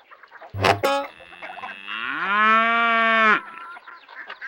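An electronic toy plays a bright, wavering tune.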